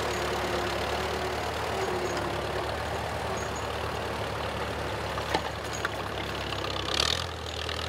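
A plough scrapes and crunches through soil.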